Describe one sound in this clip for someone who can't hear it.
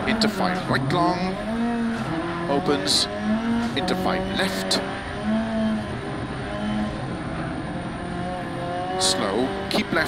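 A rally car engine revs hard, its pitch rising and dropping with each gear change.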